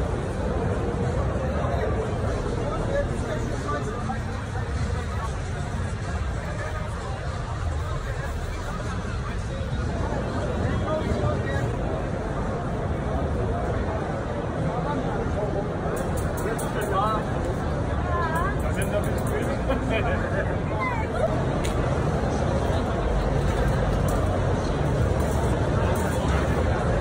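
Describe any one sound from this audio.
A crowd of people chatters in a large, busy hall.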